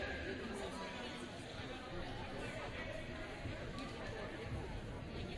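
A small crowd of players and spectators murmurs and chatters in a large echoing hall.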